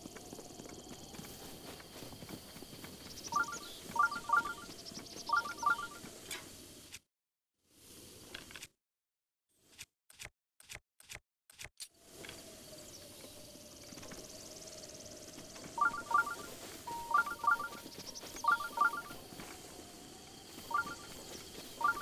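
Footsteps rustle through grass at a steady run.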